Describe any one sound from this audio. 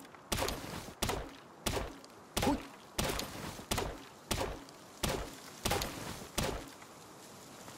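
An axe chops into a tree trunk with sharp, regular blows.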